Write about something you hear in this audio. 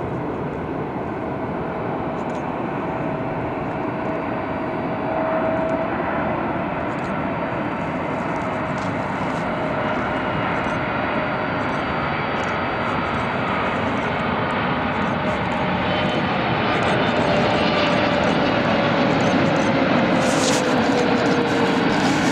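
A Boeing 777 twin-engine jet airliner roars and whines overhead on its landing approach, growing louder.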